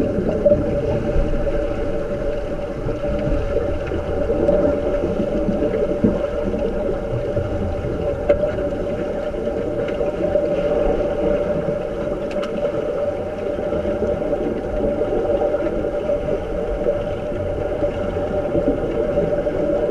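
Air bubbles burble and rise underwater.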